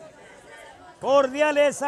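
A crowd of men cheers and shouts loudly.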